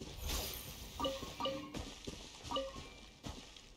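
Short bright chimes ring out, one after another.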